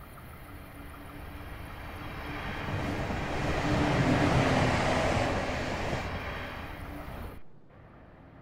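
A train rushes past close by with a loud rumble that swells and fades.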